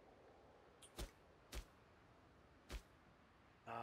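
Short game menu clicks sound.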